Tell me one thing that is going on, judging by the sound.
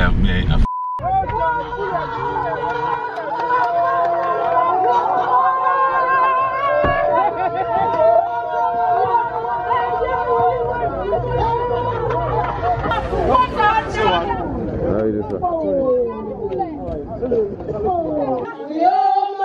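A crowd of women cheers and shouts excitedly close by.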